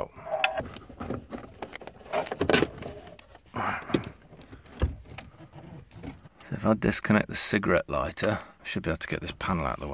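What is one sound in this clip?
Plastic trim clicks and knocks as a panel is handled.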